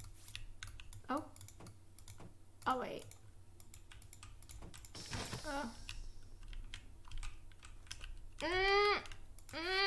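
A young woman talks and exclaims with animation close to a microphone.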